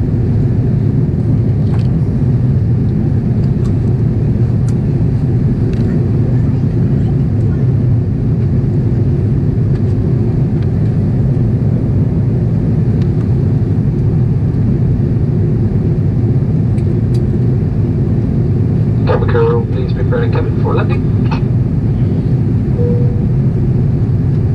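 A jet engine roars steadily inside an airplane cabin.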